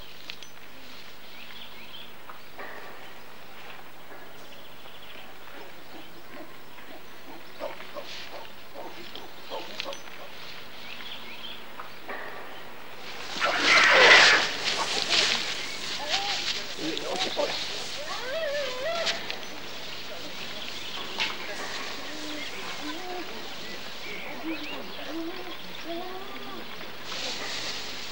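Straw rustles and crunches as a man wrestles with a gorilla.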